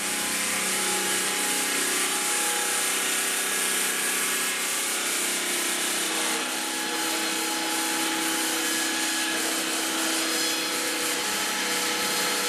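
A blade cuts through stone with a loud rasp.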